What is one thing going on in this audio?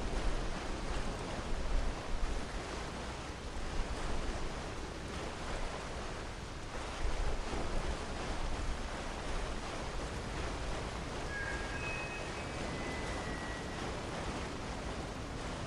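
Footsteps splash quickly through shallow water on hard ground.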